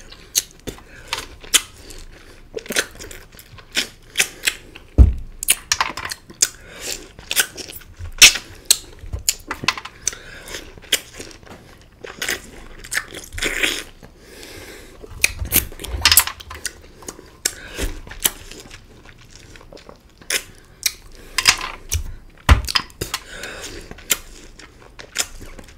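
A man sucks and slurps loudly on juicy lime wedges close to a microphone.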